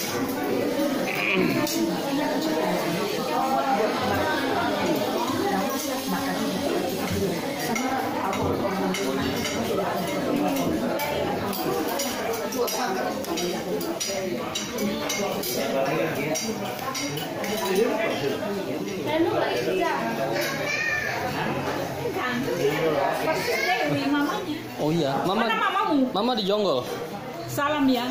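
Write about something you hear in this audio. Several people chatter and talk over one another nearby.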